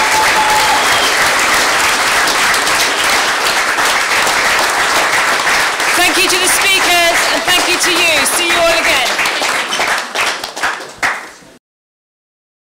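A woman claps her hands amid applause.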